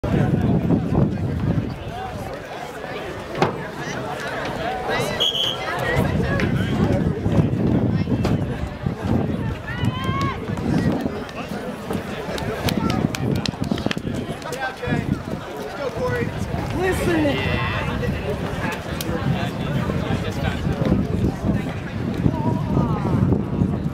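A crowd of people chatters in the open air.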